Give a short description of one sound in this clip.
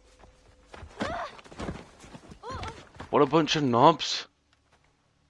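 A man speaks calmly and gravely, up close.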